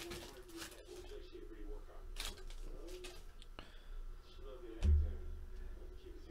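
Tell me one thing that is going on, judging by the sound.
A plastic card sleeve crinkles and rustles in someone's hands.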